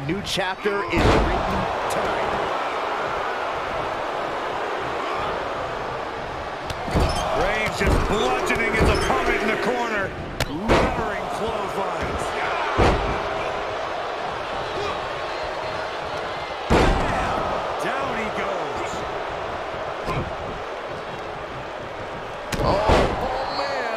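Bodies slam heavily onto a wrestling ring mat.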